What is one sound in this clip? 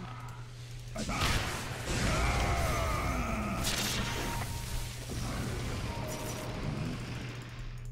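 Weapons clash in a game fight.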